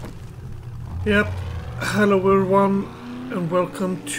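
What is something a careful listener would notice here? A truck engine starts up and revs loudly.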